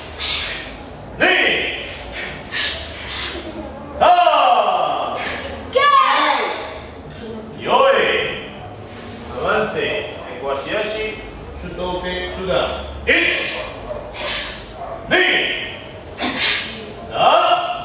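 Young boys let out sharp, loud shouts, again and again.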